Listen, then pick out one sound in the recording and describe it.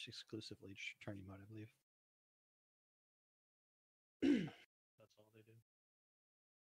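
A man talks into a close microphone in short bursts.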